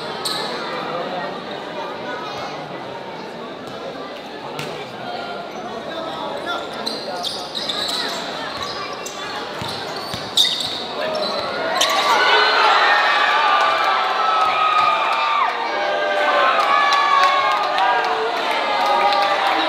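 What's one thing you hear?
A large crowd chatters and cheers in a big echoing gym.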